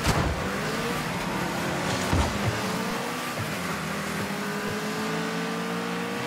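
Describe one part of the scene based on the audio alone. A video game car engine hums steadily with a slowly rising pitch.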